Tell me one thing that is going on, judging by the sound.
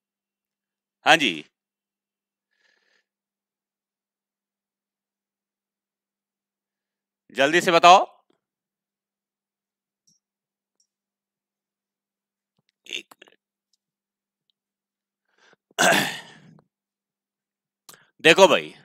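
A man speaks into a headset microphone in short bursts, calmly explaining.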